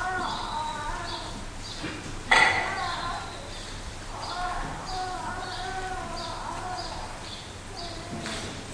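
A man chants slowly in a large echoing hall.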